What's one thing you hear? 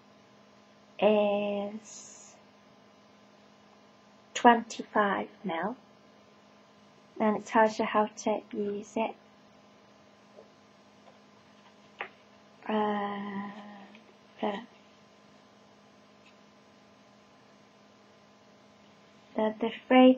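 A young woman talks calmly and close by.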